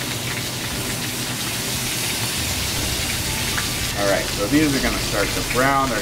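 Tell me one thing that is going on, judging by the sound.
Vegetables sizzle in a hot frying pan.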